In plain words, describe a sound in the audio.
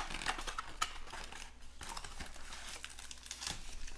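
Cardboard rustles and scrapes as a box is opened by hand.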